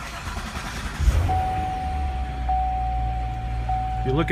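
A car engine starts with a deep roar and settles into a low, rumbling idle.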